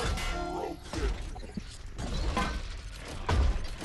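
A heavy gun clanks and clicks as it is reloaded.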